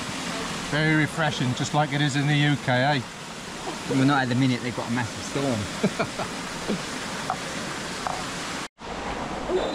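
Water laps and splashes gently.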